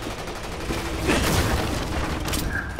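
A wooden crate smashes apart.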